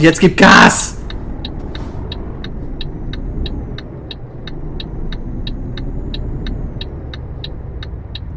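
A turn signal ticks in an even rhythm.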